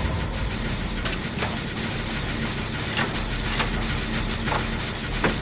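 A generator engine rattles and clanks with sharp metallic knocks.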